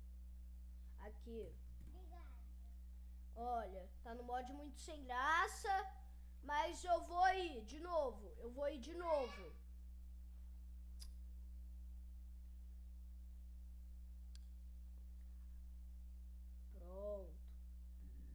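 A boy speaks with animation close to a microphone.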